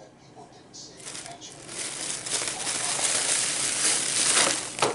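A plastic bag rustles and crinkles loudly.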